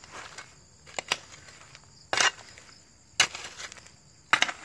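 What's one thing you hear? Loose soil is scooped and thrown onto the ground with soft thuds.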